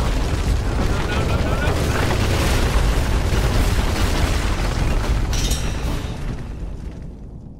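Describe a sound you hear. Wooden scaffolding collapses with a loud, rumbling crash.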